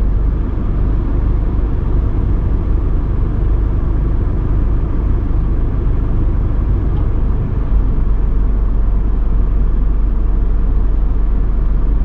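A motorbike engine putters close by and pulls away.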